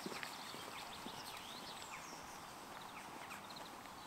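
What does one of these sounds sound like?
Footsteps walk slowly along a stone path outdoors.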